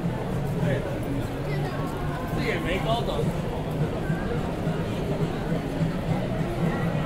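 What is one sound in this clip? A crowd of people chatters and talks all around outdoors.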